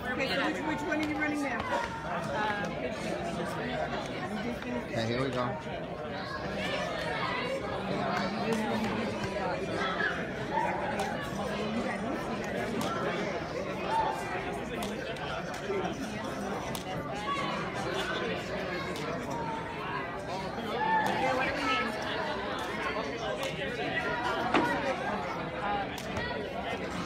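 A crowd of men and women chatters throughout a large indoor hall.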